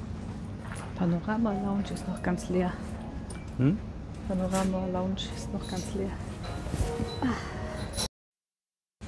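A man speaks close by in a calm voice.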